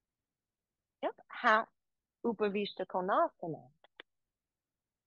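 A young woman speaks calmly and clearly into a nearby microphone.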